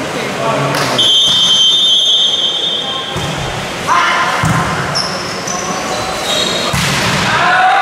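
A volleyball is struck hard with hands, over and over.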